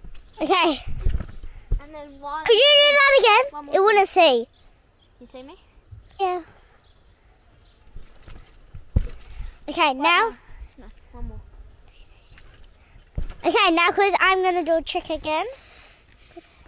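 A boy speaks with animation close by.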